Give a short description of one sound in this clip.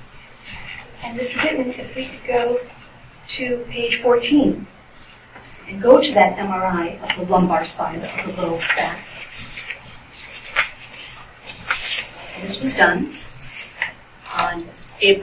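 A woman speaks clearly in a room with some echo.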